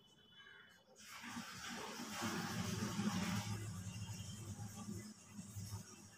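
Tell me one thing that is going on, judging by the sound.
Eggs sizzle in a hot pan.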